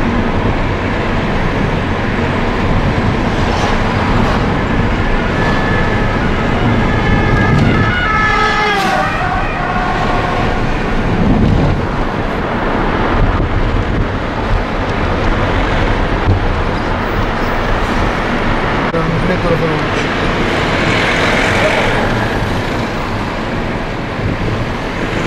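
A car engine hums steadily from inside a moving vehicle.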